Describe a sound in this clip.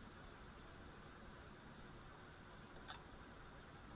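A plastic cup is set down with a light knock.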